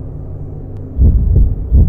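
Footsteps thud heavily on a hard floor.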